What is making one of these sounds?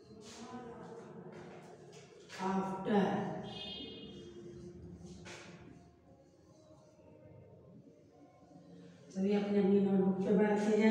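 A woman speaks clearly and slowly, close by.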